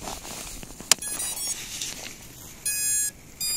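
A small drone beeps a series of short electronic tones.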